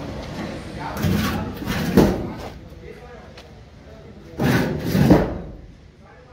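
A hand knocks on a hollow metal cabinet.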